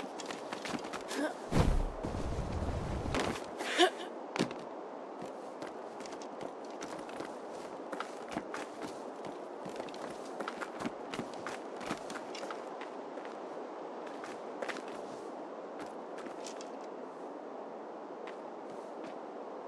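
Footsteps crunch on snow and wooden planks.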